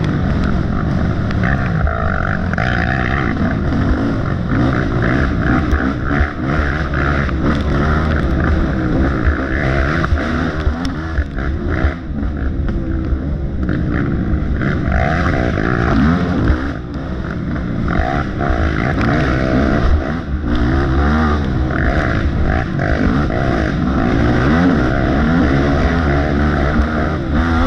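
An engine revs and rumbles up close, rising and falling in pitch.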